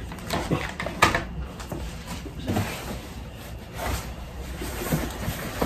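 Cardboard boxes rustle and thump as they are handled.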